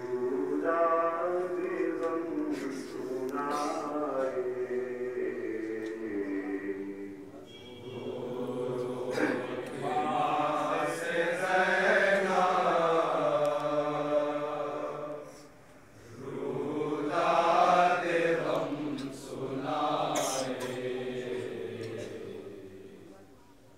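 A man chants a mournful melody loudly through a microphone.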